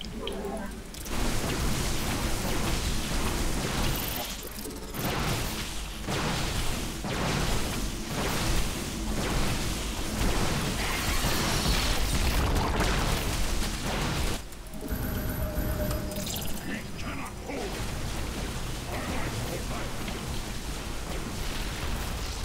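Game weapons fire and zap in rapid bursts of battle.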